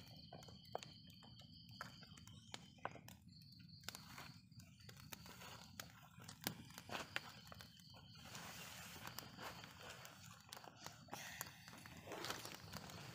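Small plastic toys click and tap against each other.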